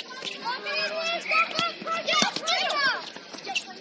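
A ball slaps into hands as players pass it.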